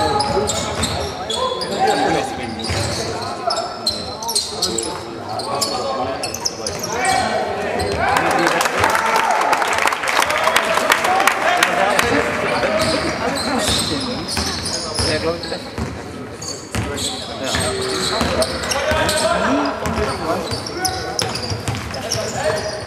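Young men call out and shout to each other across the hall.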